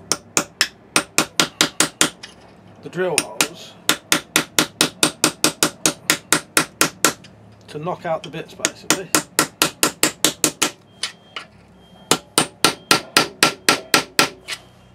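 A file rasps quickly back and forth across metal.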